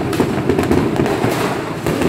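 Fireworks bang in the sky.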